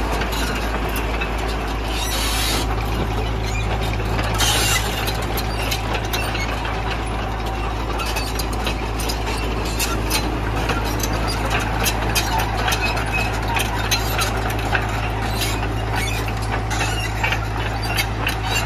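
A diesel mini excavator idles with a steady low rumble.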